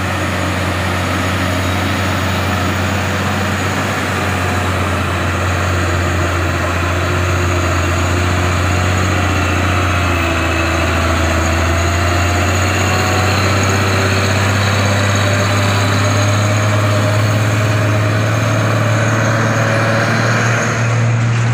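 Tyres hiss on a wet road.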